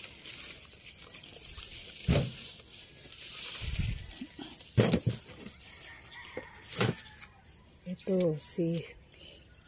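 Leaves rustle as a hand brushes against a plant.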